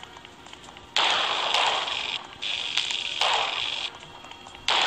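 An electric blast crackles and roars.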